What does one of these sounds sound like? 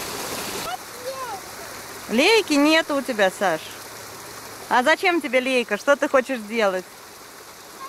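A little girl babbles and chatters nearby.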